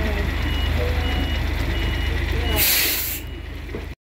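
A bus engine rumbles as a bus drives past close by.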